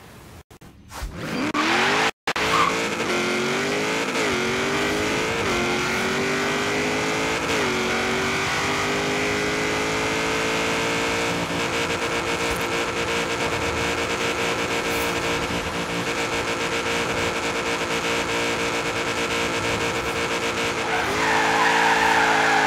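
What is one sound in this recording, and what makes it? A race car engine roars loudly, revving up through the gears at high speed.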